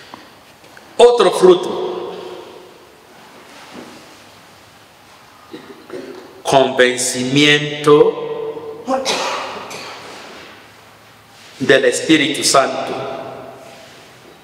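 A man speaks slowly and solemnly into a microphone in a reverberant room.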